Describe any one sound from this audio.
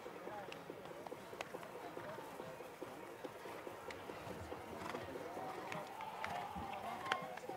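Horses' hooves thud softly on grass.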